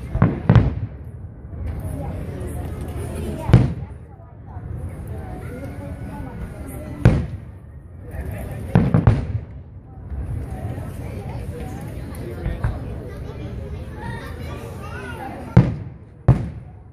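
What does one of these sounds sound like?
Fireworks boom loudly in the distance, echoing after each burst.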